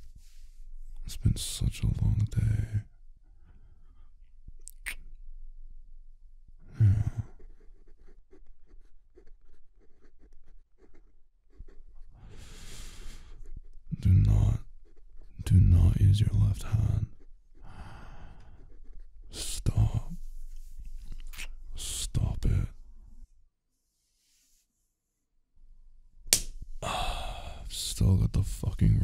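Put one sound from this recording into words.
A young man speaks softly, close to a microphone.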